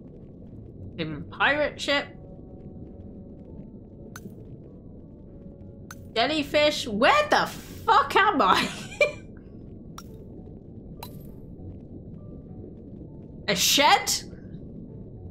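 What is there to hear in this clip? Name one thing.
A young woman talks with animation, close to a microphone, in short bursts.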